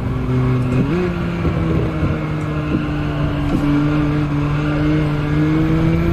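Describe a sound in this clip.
A racing car engine drones steadily, its pitch jumping up once as the car shifts gear.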